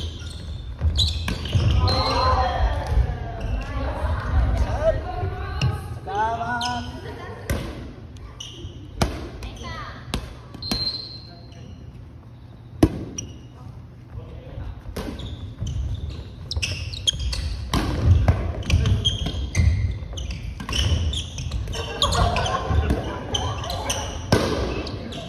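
Women and men call out and cheer with animation.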